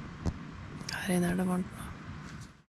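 A woman speaks softly close by.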